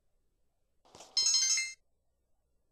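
A bright electronic chime rings briefly.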